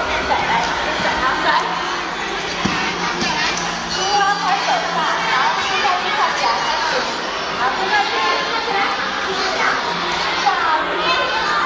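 A woman talks gently to a child close by.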